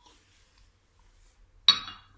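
A cup clinks down onto a plastic tray.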